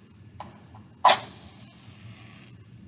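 A match strikes and flares with a short hiss.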